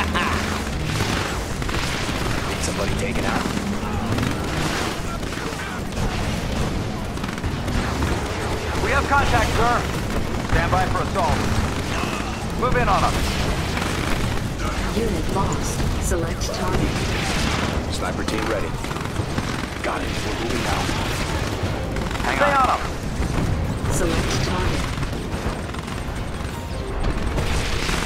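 Gunfire and explosions crackle and boom without a break.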